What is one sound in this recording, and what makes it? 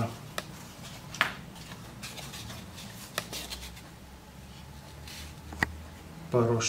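Small wooden pieces tap and click against a wooden surface.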